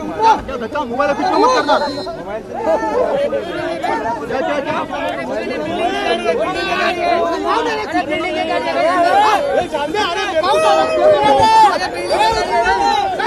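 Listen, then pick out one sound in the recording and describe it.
A young woman speaks briefly from close by.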